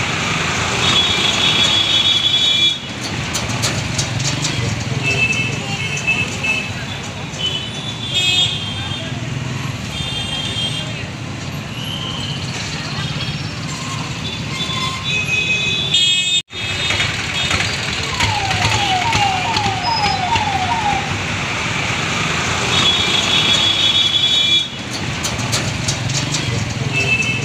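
Motorcycle engines rumble and buzz close by in busy street traffic.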